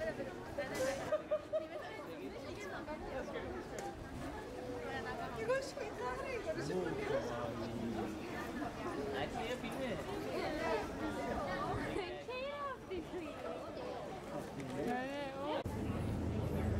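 A young woman talks cheerfully nearby.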